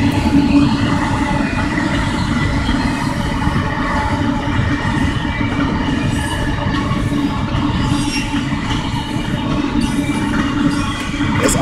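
A car engine rumbles steadily while driving.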